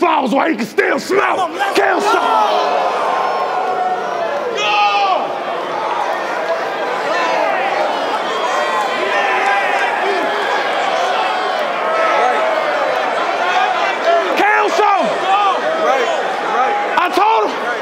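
A crowd murmurs and reacts in a large echoing hall.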